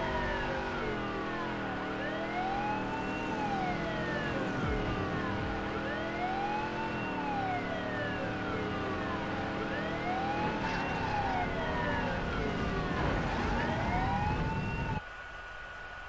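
A car engine roars and revs at high speed.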